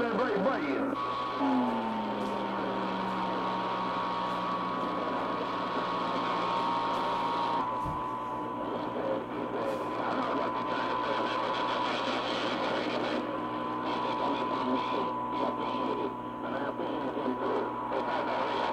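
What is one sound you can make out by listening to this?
A steady whistling tone drones through radio static.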